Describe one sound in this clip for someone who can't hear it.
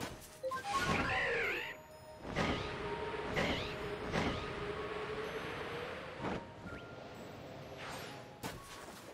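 Wind whooshes past in short gusts.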